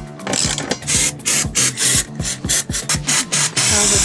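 A can of spray paint hisses.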